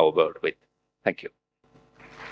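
An elderly man speaks calmly through a microphone.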